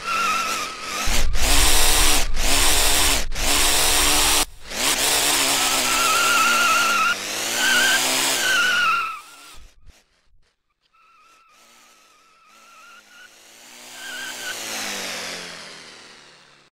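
A toy car's motor whines, its pitch rising and falling.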